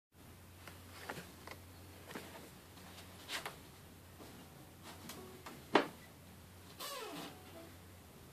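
A guitar knocks and thumps as it is handled.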